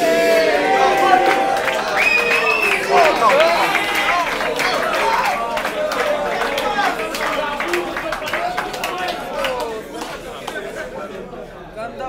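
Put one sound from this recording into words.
A crowd of young men and women chatters and shouts loudly.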